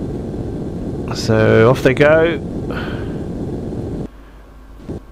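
A missile roars steadily as it flies through the air.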